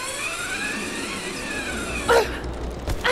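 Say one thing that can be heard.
A zip line whirs as a person slides down it.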